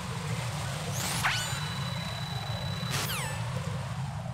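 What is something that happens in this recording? A radio gives short rising and falling electronic chirps.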